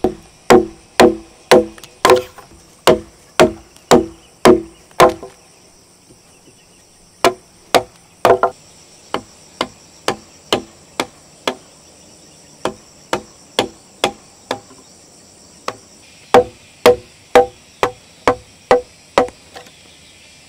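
A mallet knocks on a chisel cutting into wood in sharp, regular blows.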